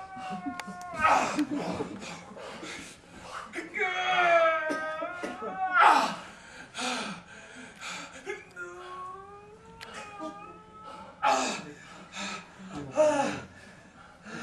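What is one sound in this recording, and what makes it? A young man shouts loudly.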